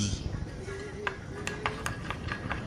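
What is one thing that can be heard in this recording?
Chopsticks clink against a glass bowl.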